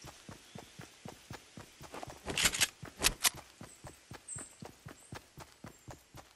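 Footsteps thud quickly and steadily on grass.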